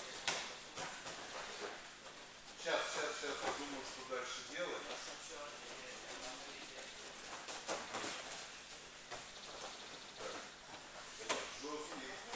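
Bodies thump onto padded mats.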